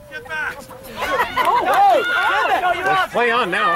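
Young women shout and cheer excitedly from nearby, outdoors.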